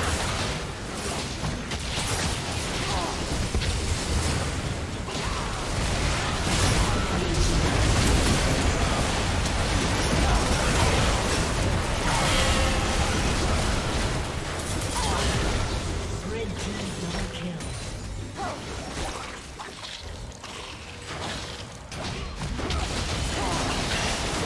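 Video game spell effects whoosh and burst during a battle.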